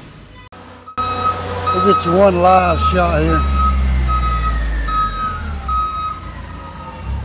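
A forklift warning beeper beeps repeatedly.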